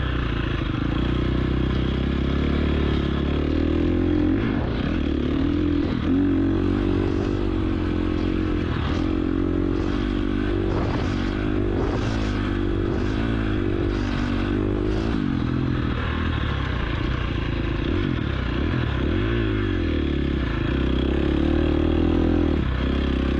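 A dirt bike engine roars close by, rising and falling in pitch as it shifts gears.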